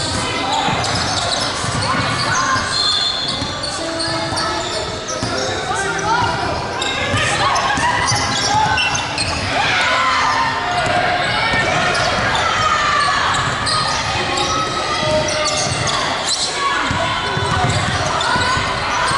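Young women call out to each other during play.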